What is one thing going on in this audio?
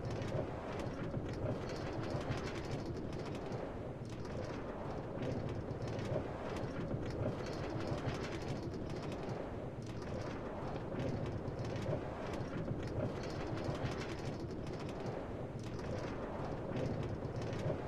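A minecart rattles steadily along a rail track.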